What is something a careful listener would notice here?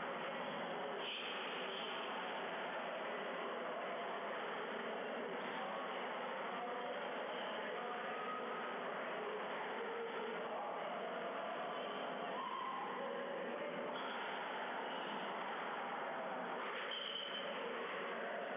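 Shoes squeak sharply on a wooden court floor.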